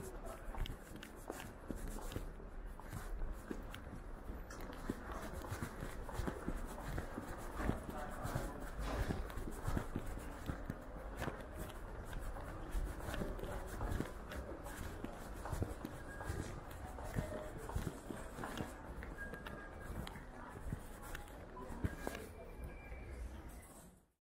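Footsteps walk down stone steps close by.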